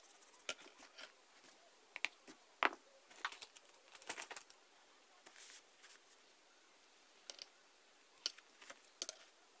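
Sheets of paper rustle and tap.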